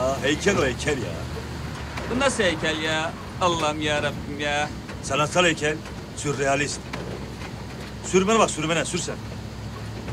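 A man talks cheerfully close by.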